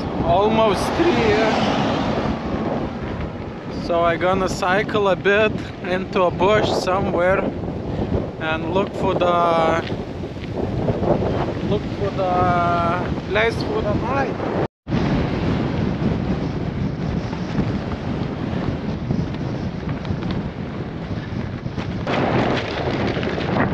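Wind rushes across the microphone outdoors.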